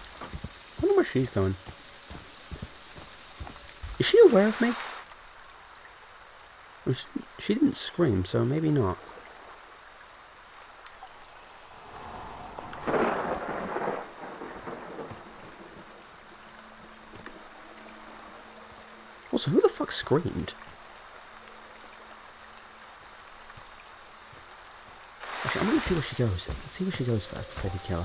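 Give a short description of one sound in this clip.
Heavy footsteps trudge slowly over leaves and dirt.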